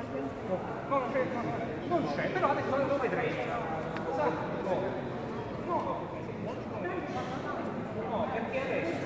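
A crowd of adults talks over one another close by, in a large echoing hall.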